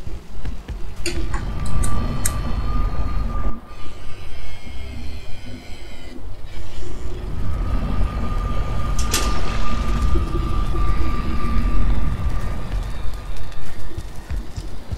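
A portal roars with a deep rushing whoosh.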